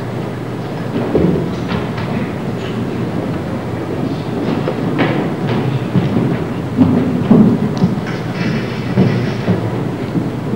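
Children's feet thump on a wooden stage floor.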